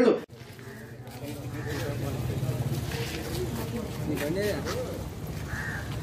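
Footsteps scuff on pavement as several people walk.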